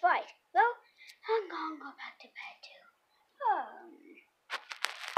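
A young boy speaks with animation close to the microphone.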